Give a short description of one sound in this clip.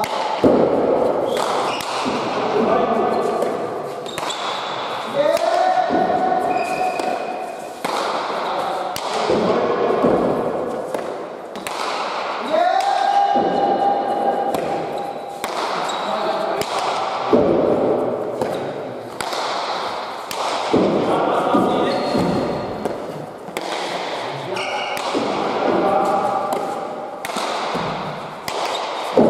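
A ball smacks against walls and hands, echoing sharply in a large hall.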